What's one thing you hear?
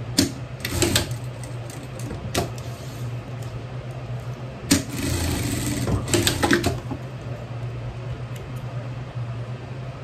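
A sewing machine motor hums steadily, whirring louder in a short burst of stitching.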